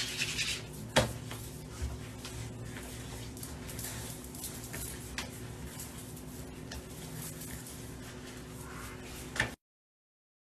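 Water runs from a tap quietly.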